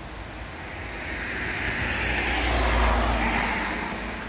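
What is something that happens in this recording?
A car passes on a paved road, its tyres hissing on the asphalt.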